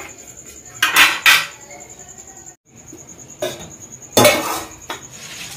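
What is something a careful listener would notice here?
A metal plate clanks against a hard surface.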